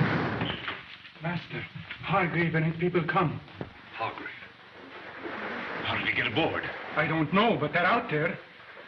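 A middle-aged man speaks in a low, tense voice.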